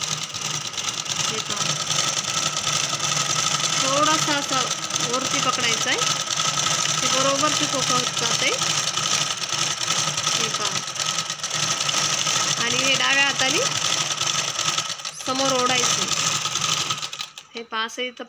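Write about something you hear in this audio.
A sewing machine whirs steadily.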